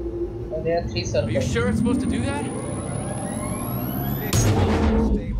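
A machine powers up with a whine that rises in pitch.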